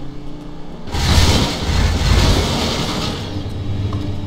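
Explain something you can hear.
A car collides with another car with a loud crash.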